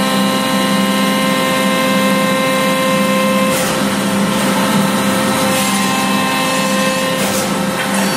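A hydraulic press hums as it squeezes hot steel.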